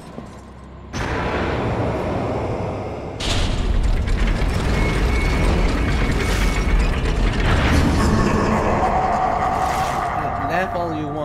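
A fire roars loudly with a deep rumble.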